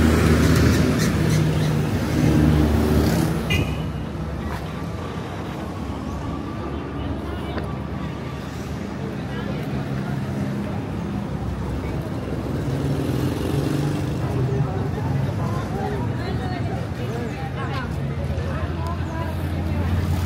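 Traffic hums steadily on a busy city street outdoors.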